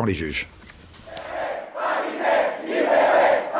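A large crowd outdoors shouts and cheers together.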